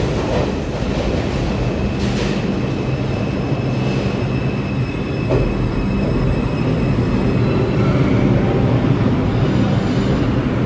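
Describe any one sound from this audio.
A subway train rumbles loudly into an echoing underground station.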